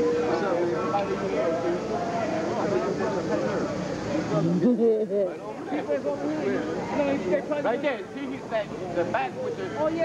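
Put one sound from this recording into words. Several men talk with animation close by, outdoors.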